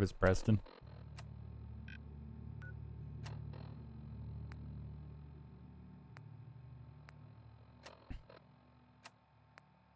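An electronic device clicks and beeps softly as its buttons are pressed.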